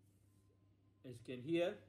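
An older man speaks calmly up close.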